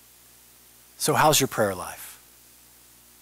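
A man speaks briefly and with feeling through a microphone in a large hall.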